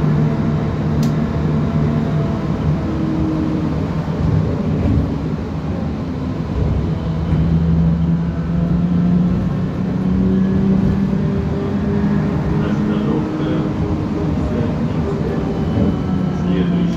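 A bus engine hums steadily from inside, rising and falling in pitch.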